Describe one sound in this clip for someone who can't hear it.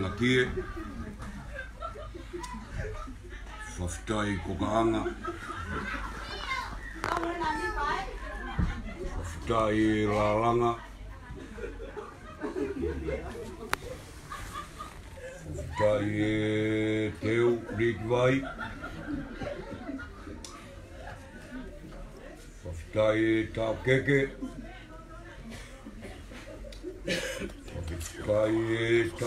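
A group of men and women sing together nearby.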